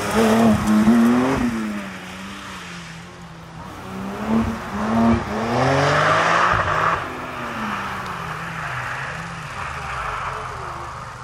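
Tyres crunch and spray over gravel.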